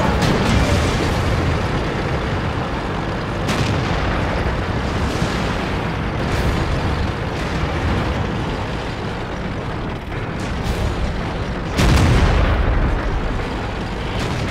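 A heavy tank engine rumbles and clanks steadily.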